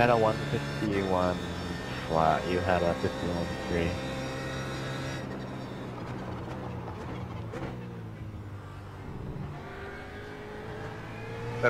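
A racing car engine roars, rising in pitch and dropping with each gear change.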